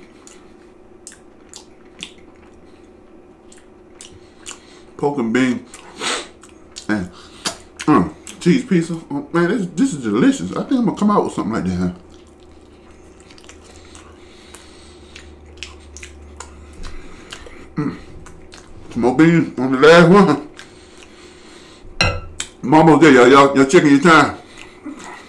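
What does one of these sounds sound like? A man chews and smacks food close to a microphone.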